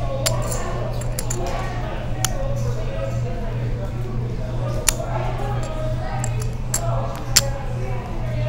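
Poker chips clack together.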